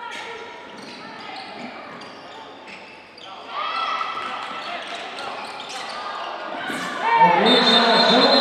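Young women players shout and call out to each other across the court.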